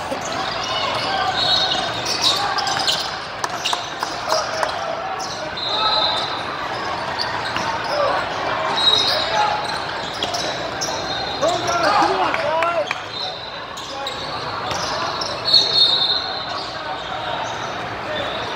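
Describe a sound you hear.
Basketballs bounce on the court.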